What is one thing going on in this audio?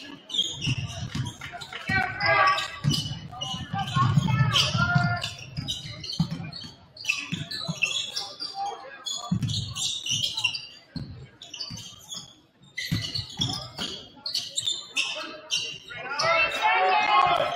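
A crowd cheers and calls out in a large echoing gym.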